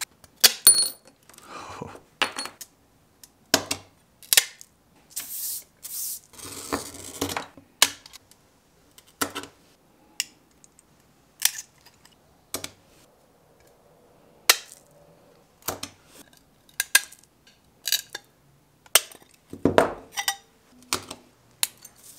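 Grozing pliers chip and crack at the edge of a piece of stained glass.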